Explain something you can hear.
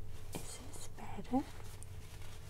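A young woman makes a few short, soft vocal sounds close to a microphone.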